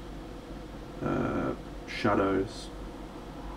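A man speaks briefly and calmly into a close microphone.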